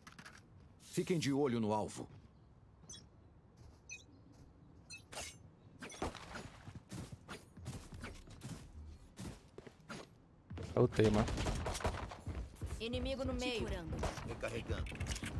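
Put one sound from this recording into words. A man talks close to a microphone, with animation.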